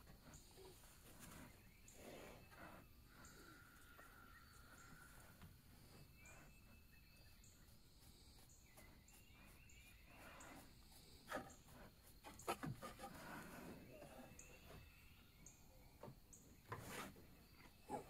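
A black bear sniffs and snuffles close by.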